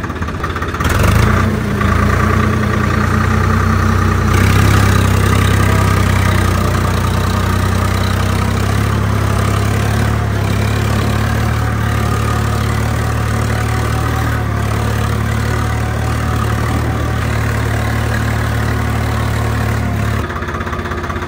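A tractor engine idles with a steady, low rumble.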